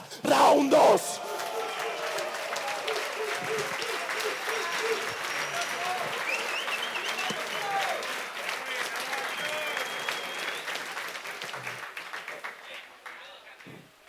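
A crowd cheers and shouts in a loud echoing hall.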